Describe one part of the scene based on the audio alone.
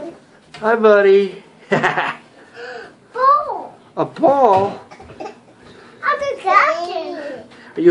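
A baby babbles and squeals happily.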